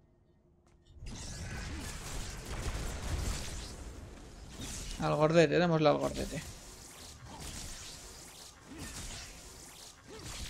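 Energy blasts crackle and boom in a fast fight.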